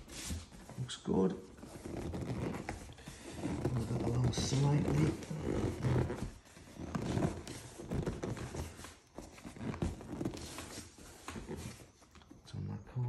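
Leather creaks and rubs as it is stretched by hand.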